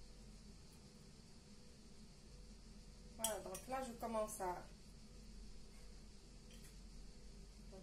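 A metal spoon scrapes and clinks against a saucepan.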